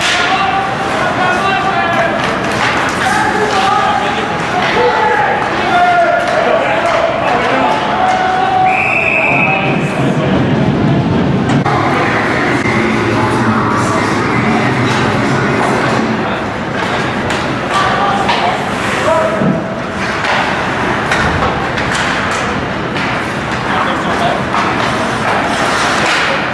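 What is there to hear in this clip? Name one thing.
Skates scrape and swish across ice.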